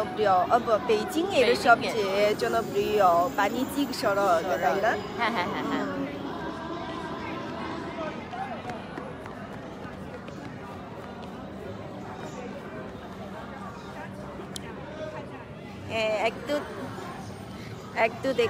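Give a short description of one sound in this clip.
A young woman talks cheerfully close to a microphone.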